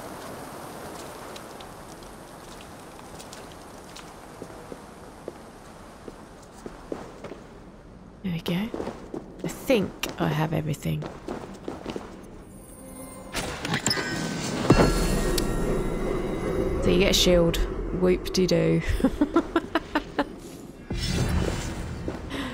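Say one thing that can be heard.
Footsteps tread on stone floor.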